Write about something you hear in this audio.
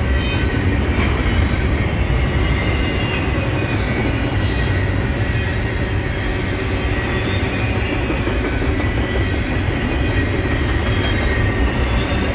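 Train wheels squeal and clatter over the rails.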